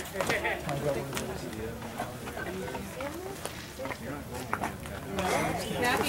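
Young boys talk and call out excitedly outdoors.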